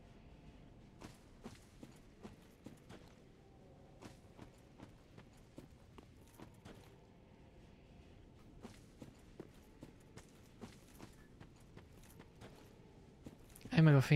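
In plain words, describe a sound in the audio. Footsteps crunch on dry leaves at a steady walking pace.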